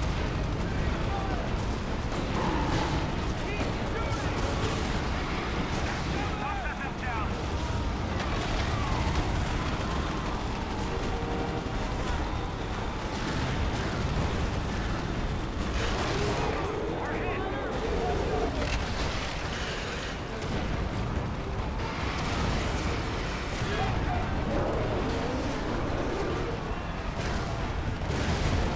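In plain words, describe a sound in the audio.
Gunfire and explosions rumble loudly and without a break.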